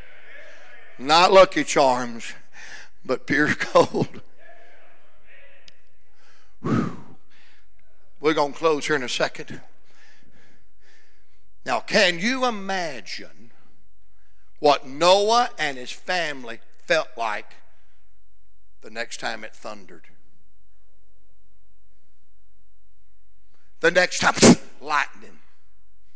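A man preaches with animation into a microphone, heard over loudspeakers in a large echoing hall, pausing often between phrases.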